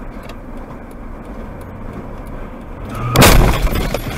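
Road noise rumbles inside a moving car.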